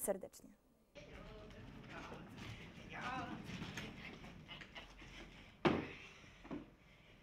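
A cart's wheels rumble across a wooden stage.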